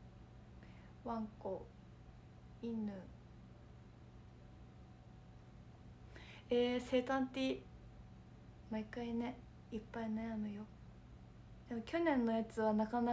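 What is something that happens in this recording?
A young woman speaks softly and close up, in short bursts with pauses.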